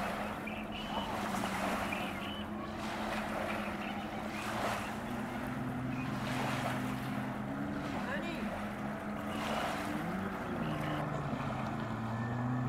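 Racing boat engines drone and whine steadily in the distance.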